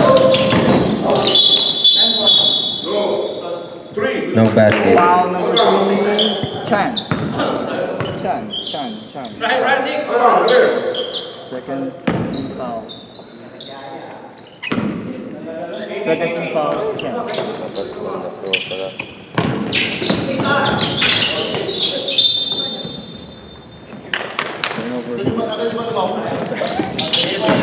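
Sneakers squeak sharply on a wooden floor.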